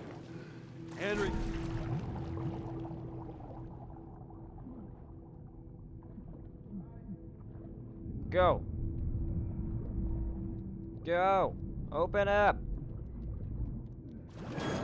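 Water bubbles and gurgles underwater.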